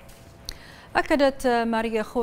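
A woman speaks clearly into a microphone, reading out the news.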